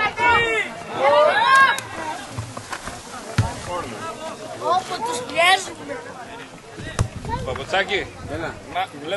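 Young boys shout to each other across an open pitch outdoors.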